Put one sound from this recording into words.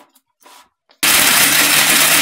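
A blender motor whirs loudly.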